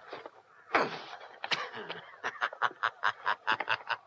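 A young man laughs heartily nearby.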